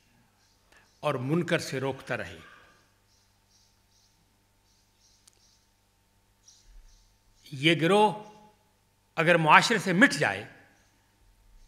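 An elderly man speaks slowly into a microphone, with long pauses.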